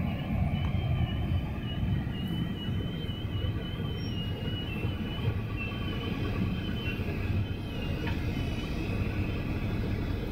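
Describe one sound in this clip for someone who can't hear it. Vehicles pass by on a busy road.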